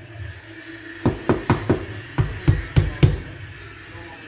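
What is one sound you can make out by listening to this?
A fist knocks on a metal door, ringing with a hollow clang.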